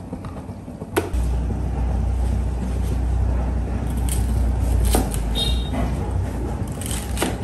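A knife chops leafy vegetables on a wooden board.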